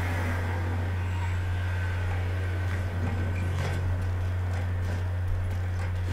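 A car drives past along the street.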